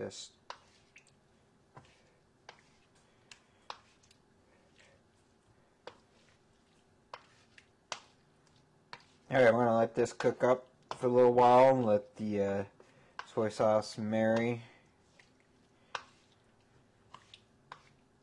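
A wooden spoon clicks and scrapes against a pan as food is stirred.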